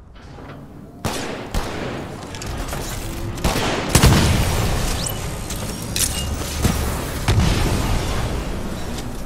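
Gunfire and explosions boom and crackle in bursts.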